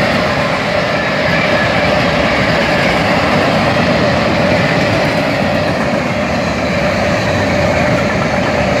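A freight train rumbles past close by, its wheels clattering and squealing on the rails.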